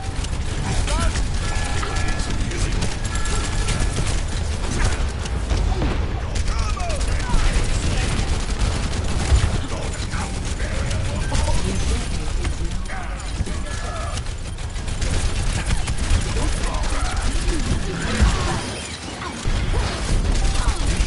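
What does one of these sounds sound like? Rapid gunfire crackles and thuds in a fast video game battle.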